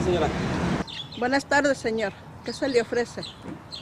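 A middle-aged woman speaks calmly up close.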